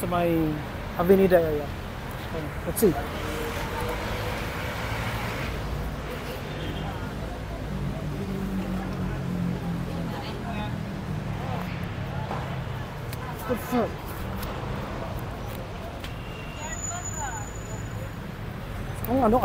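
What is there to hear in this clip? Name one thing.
A busy outdoor crowd murmurs and chatters all around.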